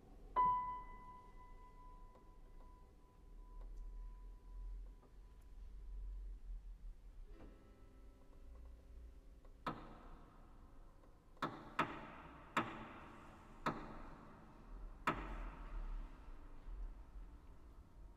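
A piano plays single ringing notes and sharp struck chords in a resonant room.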